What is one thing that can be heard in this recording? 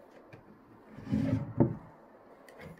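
A wooden drawer scrapes as it is pulled open.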